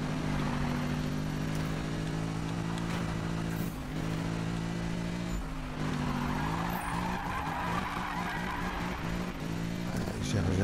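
A sports car engine roars steadily at high revs.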